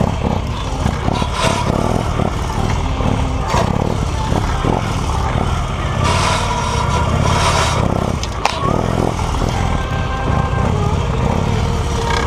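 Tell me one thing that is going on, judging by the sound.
A motorcycle engine revs up and down as it weaves through tight turns.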